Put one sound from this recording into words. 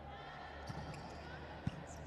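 A volleyball bounces on the floor.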